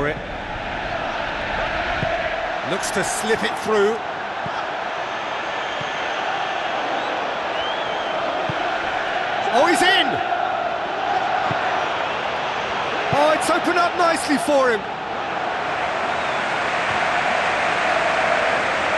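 A large stadium crowd roars and chants.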